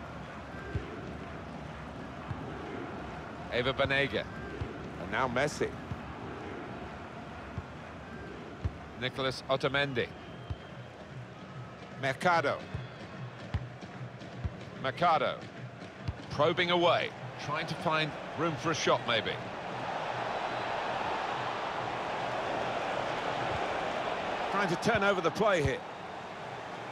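A stadium crowd murmurs steadily and swells into a roar.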